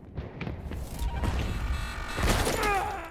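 Loud explosions boom and rumble close by.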